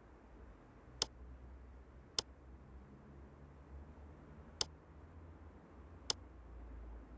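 A lamp switch clicks several times.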